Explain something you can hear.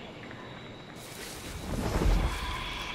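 A figure lunges out of the bushes with a sudden loud whoosh and thump.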